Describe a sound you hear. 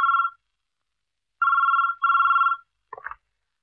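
A telephone rings in short bursts.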